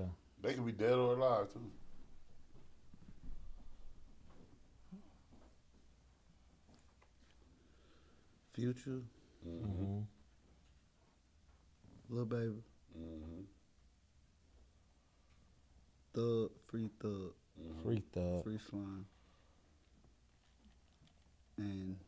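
A young man speaks calmly into a close microphone, in short bursts with pauses.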